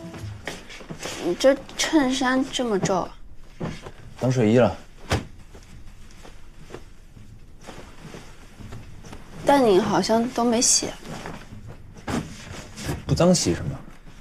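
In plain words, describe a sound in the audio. Bed sheets rustle as they are pulled.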